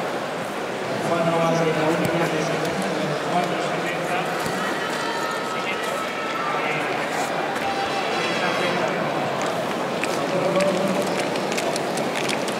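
A large stadium crowd murmurs and cheers in the open air.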